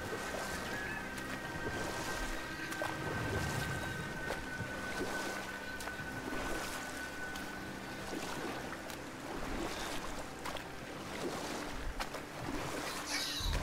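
Oars splash rhythmically in water as a small boat is rowed.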